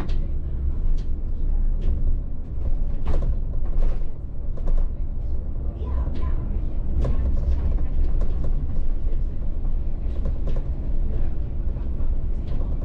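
A bus engine rumbles low and steady from inside the cab.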